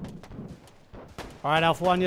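Rifle shots crack nearby.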